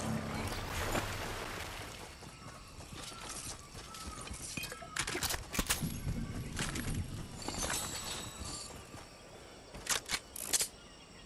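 Water splashes steadily underfoot as someone wades through shallows.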